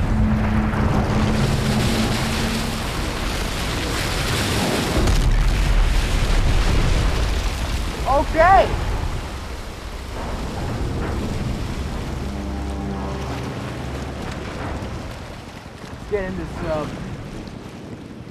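Rough water roars and crashes in heavy waves.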